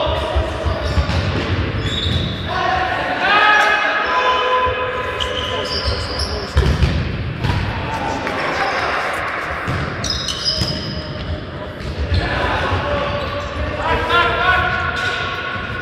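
Sneakers squeak on a hard indoor court.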